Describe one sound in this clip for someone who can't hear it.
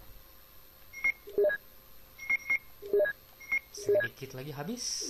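Short electronic beeps sound in quick succession.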